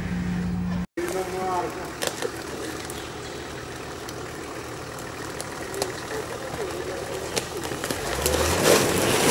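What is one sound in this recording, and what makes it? An off-road engine strains as it climbs a muddy slope.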